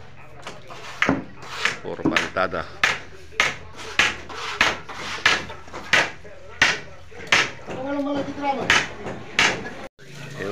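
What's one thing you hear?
A trowel slaps mortar onto a block wall in a steady rhythm.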